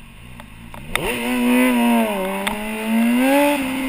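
A motorcycle engine revs up loudly and roars as the bike rides off.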